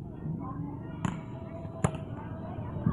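A ball is kicked with sharp thumps outdoors.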